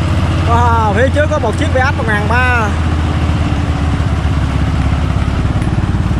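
A tractor engine chugs loudly and steadily close by.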